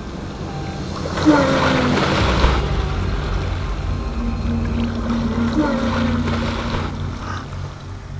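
Water splashes as a man thrashes in a pool.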